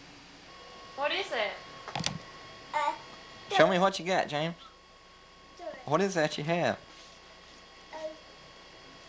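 A young child talks and squeals close by.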